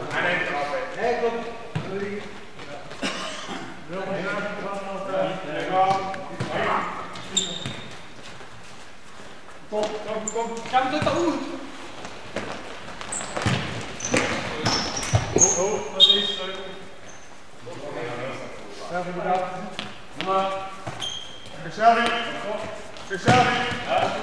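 Young men shout and call to each other across a large echoing hall.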